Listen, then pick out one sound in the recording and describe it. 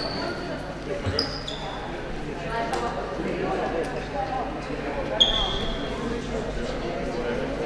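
A crowd of young players chatter at a distance in a large echoing hall.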